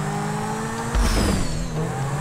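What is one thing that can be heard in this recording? A car lands with a heavy thud.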